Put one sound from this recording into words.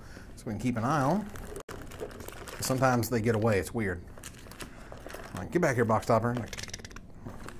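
Foil card packs crinkle and rustle as hands handle them.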